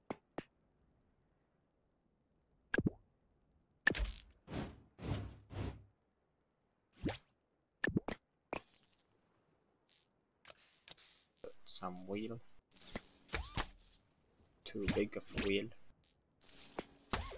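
Short clicks and pops sound as building parts snap into place.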